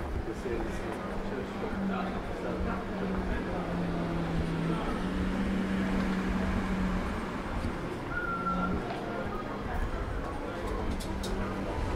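Wind rumbles softly outdoors on a quiet street.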